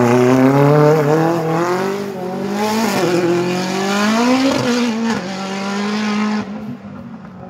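A rally car engine roars loudly and revs up and down as it races past.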